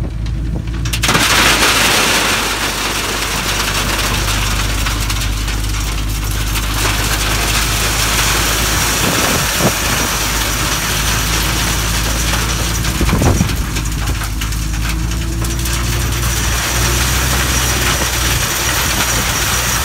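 Gravel pours and rattles loudly into a metal truck bed.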